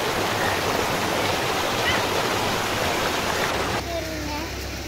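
Water rushes loudly over small weirs in a stream.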